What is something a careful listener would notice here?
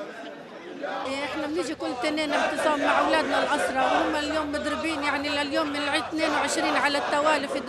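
An elderly woman speaks earnestly into a microphone, close by.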